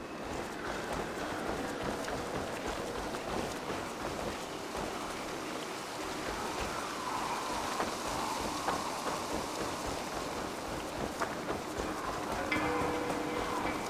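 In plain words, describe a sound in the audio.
Footsteps crunch on dirt and leaves.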